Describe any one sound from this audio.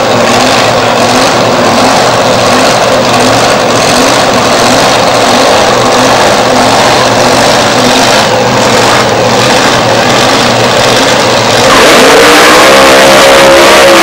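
A nitro-fuelled dragster engine idles with a loud, lumpy rumble.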